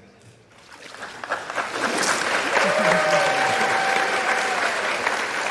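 Water splashes.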